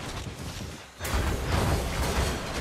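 Heavy weapon blows thud against creatures.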